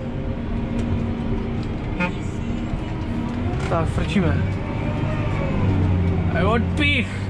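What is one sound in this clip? A tractor engine drones steadily from inside the cab.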